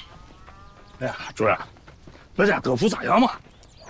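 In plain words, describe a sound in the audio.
A middle-aged man speaks with animation nearby.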